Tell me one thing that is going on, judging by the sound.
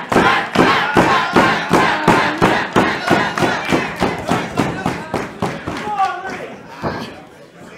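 A crowd claps in a steady rhythm in a large echoing hall.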